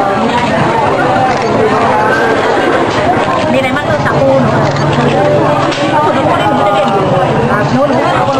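A crowd of young people chatter and laugh close by.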